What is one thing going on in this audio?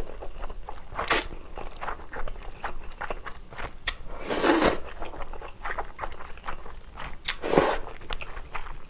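A young woman slurps noodles loudly, close to the microphone.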